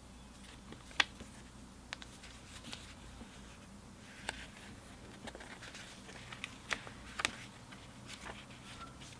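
Paper booklet pages rustle and flip.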